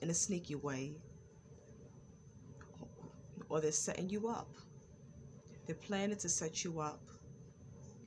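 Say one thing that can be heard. A woman speaks calmly in short phrases close to the microphone.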